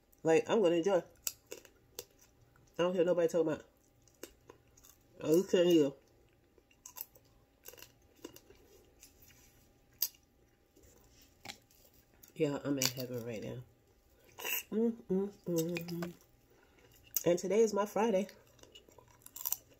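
A woman sucks and slurps on crab meat.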